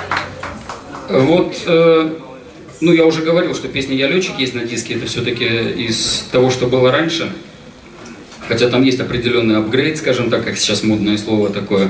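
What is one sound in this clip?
A middle-aged man speaks calmly into a microphone, heard over loudspeakers.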